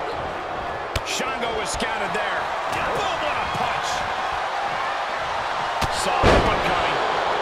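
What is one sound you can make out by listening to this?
Heavy thuds of bodies slam onto a wrestling mat.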